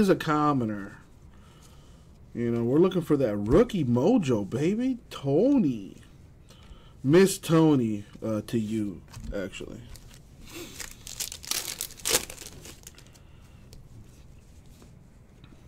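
Trading cards rustle softly as they are flicked through.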